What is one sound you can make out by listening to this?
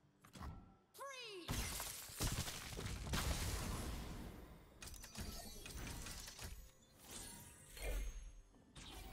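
Magical game sound effects whoosh and chime as cards are played.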